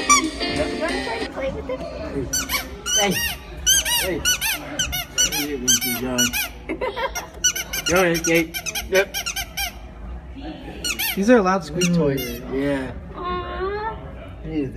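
A young goat bleats loudly and repeatedly.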